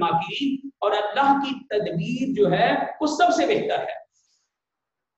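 A man speaks with animation through a clip-on microphone, close by.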